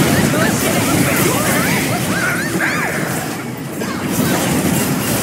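Magic blasts and clashing effects burst in a fast game battle.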